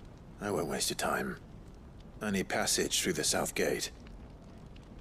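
A young man speaks calmly in a low voice.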